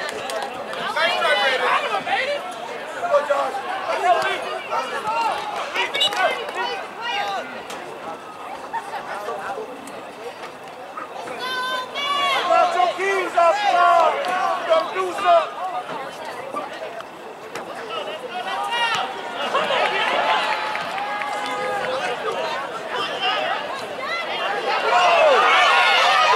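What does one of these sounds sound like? A crowd of spectators close by chatters and calls out outdoors.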